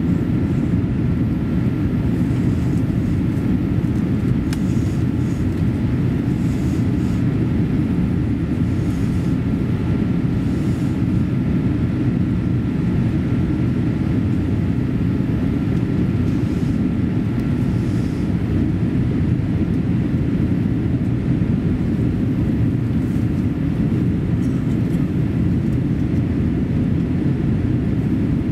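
Jet engines roar steadily inside an airliner cabin.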